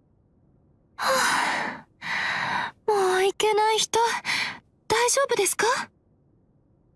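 A young woman sighs, then speaks gently and with concern, close to the microphone.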